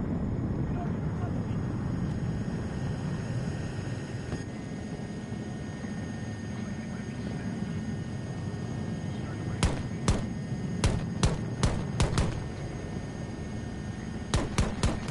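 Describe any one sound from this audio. A helicopter's rotor drones steadily and low.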